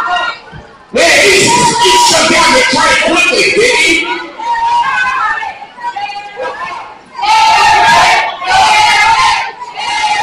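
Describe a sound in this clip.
A man talks loudly through a microphone and loudspeakers in an echoing hall.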